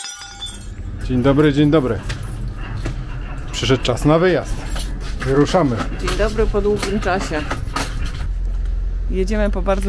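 A man talks close up, outdoors.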